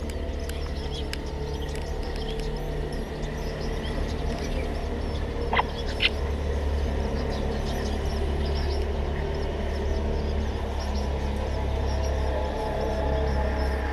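A small bird rustles in dry nest straw.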